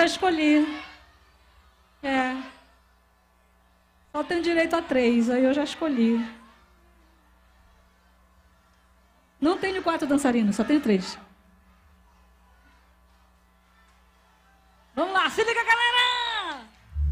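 A young woman sings into a microphone in short bursts, loud through loudspeakers.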